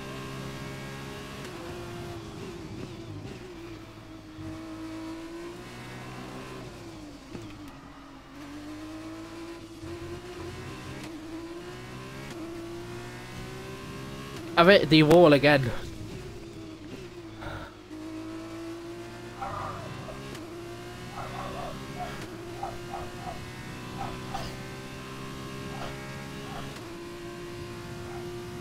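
A racing car engine roars and revs up and down as it shifts gears.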